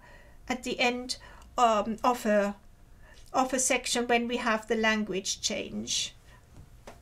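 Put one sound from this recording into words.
A middle-aged woman speaks calmly and clearly into a microphone.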